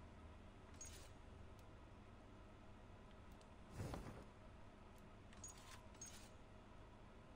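Soft menu swishes sound now and then.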